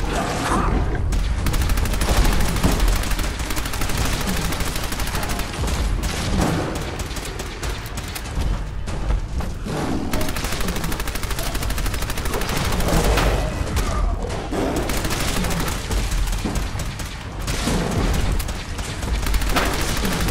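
A large beast roars and snarls.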